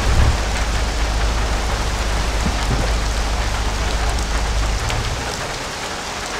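A car engine idles with a low rumble, then shuts off.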